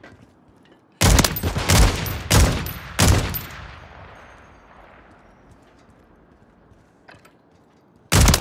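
Rapid gunshots fire in loud bursts and echo away.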